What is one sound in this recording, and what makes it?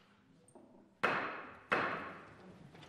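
Two loud knocks sound on a wooden desk in a large, echoing hall.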